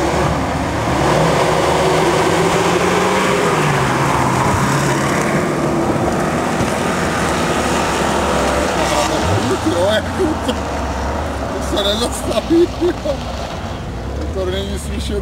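A rally car engine roars loudly and revs up and down as it speeds past.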